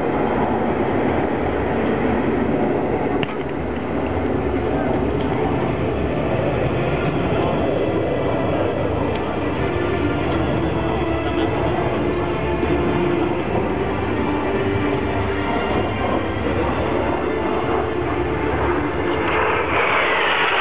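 Jet engines roar overhead, growing louder as the planes approach.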